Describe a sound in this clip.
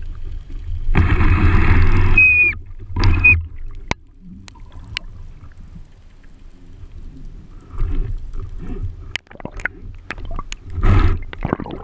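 Air bubbles gurgle and rush in bursts underwater.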